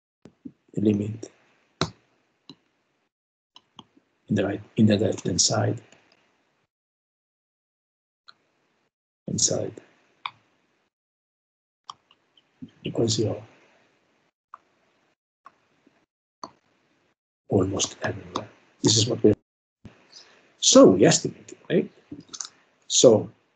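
A man lectures calmly, heard through an online call, with pauses between phrases.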